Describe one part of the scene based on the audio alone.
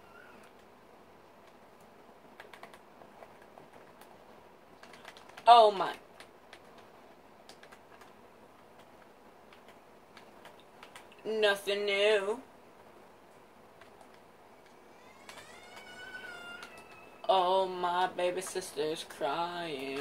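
Video game sounds play faintly from a television, with soft clicks and taps.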